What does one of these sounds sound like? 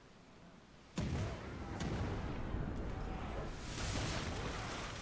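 Cannons fire a booming volley.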